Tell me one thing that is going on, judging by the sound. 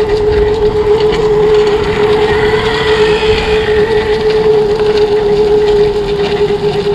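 A go-kart engine whines loudly at a steady pitch close by.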